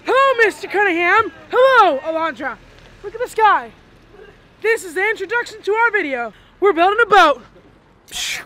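A teenage boy shouts excitedly close by.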